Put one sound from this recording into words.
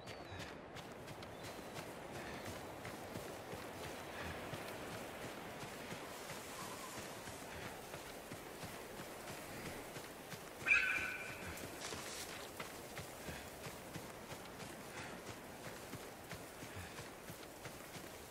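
Tall grass swishes and rustles.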